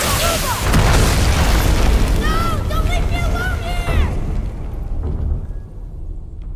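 A magical blast roars and crackles loudly, then fades away.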